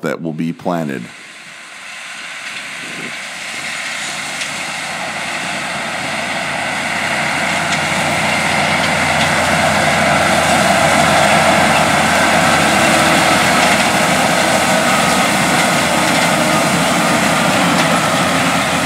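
A tractor engine drones steadily and grows louder as it nears.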